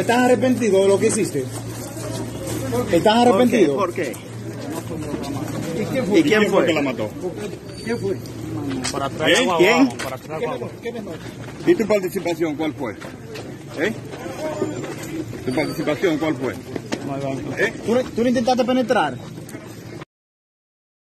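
A crowd of men talks over one another outdoors.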